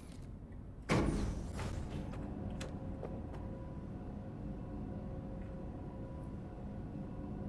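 An elevator starts with a thud and hums steadily as it moves.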